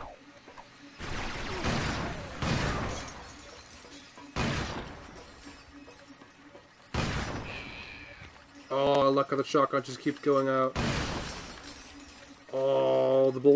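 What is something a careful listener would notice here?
Explosions and blaster shots boom in loud, sudden bursts.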